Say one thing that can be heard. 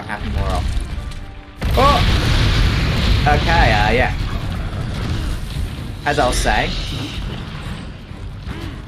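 Lava and flames roar with a deep rumble.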